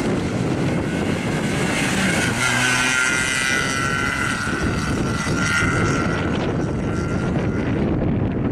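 Tyres squeal on asphalt as a car corners.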